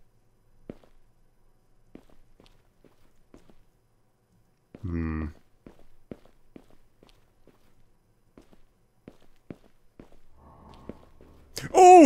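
Footsteps tap softly on a hard floor at a walking pace.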